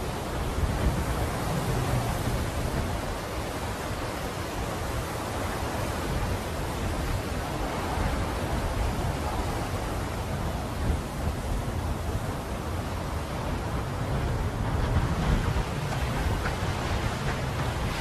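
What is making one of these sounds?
A strong wind howls and roars steadily outdoors.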